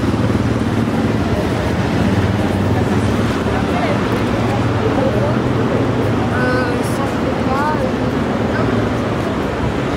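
Young women chat as they walk past close by.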